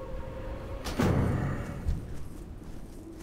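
A spell bursts with a sudden loud whoosh that quickly fades.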